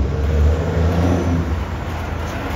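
A heavy fire engine rumbles past close by.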